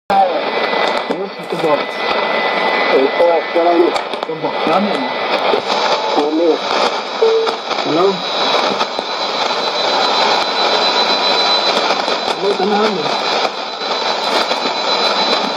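A shortwave radio hisses and crackles with static through its loudspeaker.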